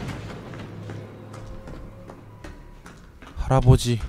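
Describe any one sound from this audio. Footsteps thud on creaking wooden stairs.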